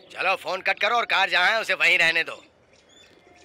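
A young man speaks tensely into a phone, close by.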